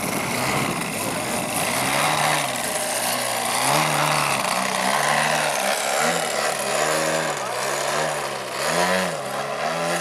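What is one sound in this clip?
A model plane's engine buzzes loudly, its pitch rising and falling as it turns.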